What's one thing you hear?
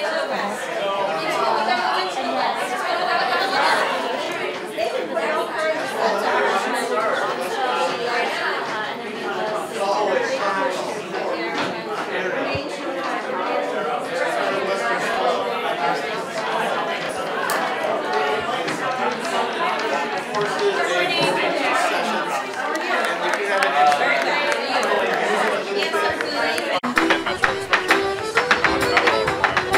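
A crowd of men and women chatters in an echoing room.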